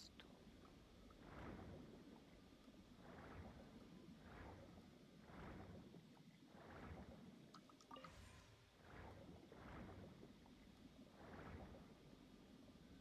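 Soft whooshing swirls of water come and go in a steady rhythm.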